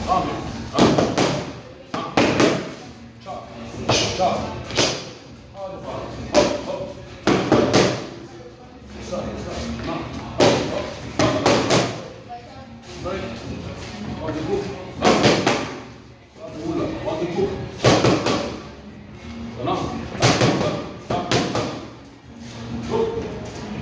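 Boxing gloves thump sharply against punch mitts in quick bursts.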